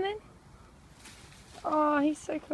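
A small bird flaps its wings in rustling grass.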